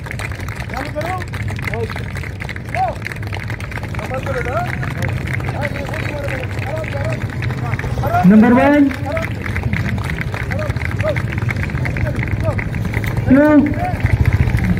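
A man speaks with animation into a microphone, heard through a loudspeaker outdoors.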